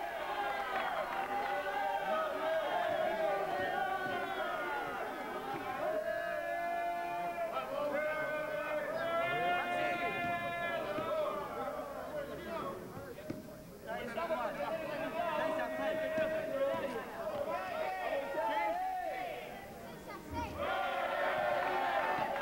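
A crowd of young men chants and sings loudly nearby.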